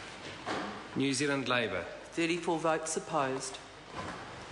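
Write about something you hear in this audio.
A man speaks loudly and clearly into a microphone in a large hall.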